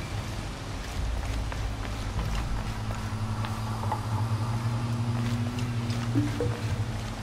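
Footsteps tread on stone.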